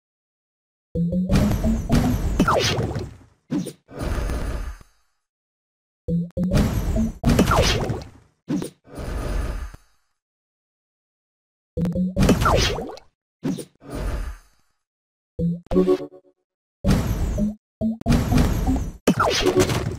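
Cartoon game sounds pop, chime and whoosh in short bursts.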